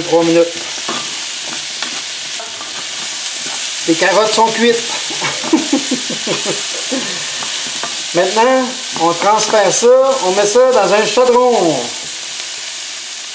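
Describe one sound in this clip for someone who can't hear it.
A wooden spoon scrapes and stirs in a frying pan.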